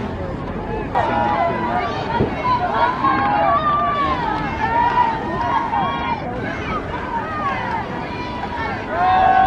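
Football players shout and call out on the field.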